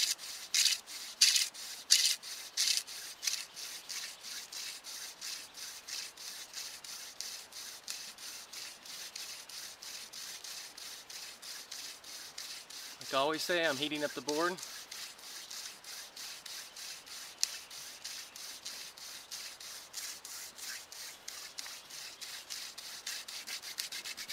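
A wooden stick whirls and rubs rhythmically against a wooden board, close by.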